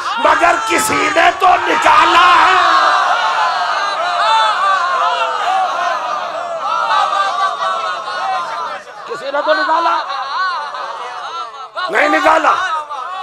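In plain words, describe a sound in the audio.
A crowd of men cries out and chants in response.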